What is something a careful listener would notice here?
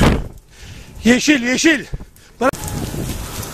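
A man shouts loudly outdoors nearby.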